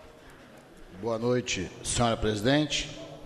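A man speaks into a microphone in a deep, formal voice.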